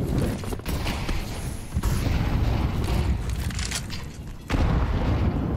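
A smoke grenade hisses as it spreads in a game.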